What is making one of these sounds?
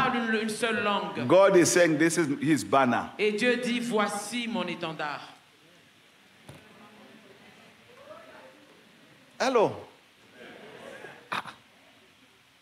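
A man preaches with animation through a loudspeaker in a large echoing hall.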